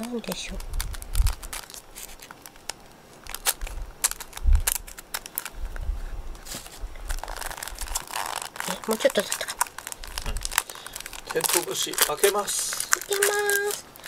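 Plastic wrapping crinkles and rustles in someone's hands.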